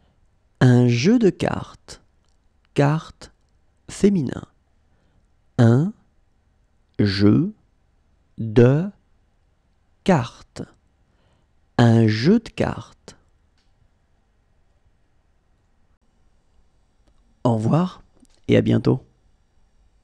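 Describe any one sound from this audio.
A man speaks words slowly and clearly into a close microphone, pausing between each.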